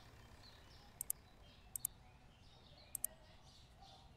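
Short interface clicks tick quickly.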